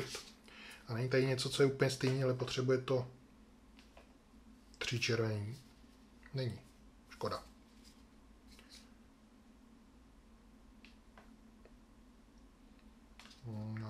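Playing cards rustle and tap softly as hands sort them.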